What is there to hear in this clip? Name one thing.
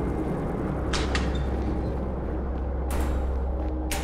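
A metal door latch clicks.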